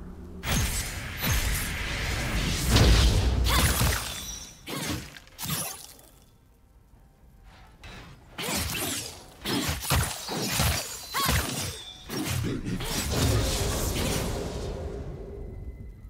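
Game spell effects crackle and whoosh in a fight.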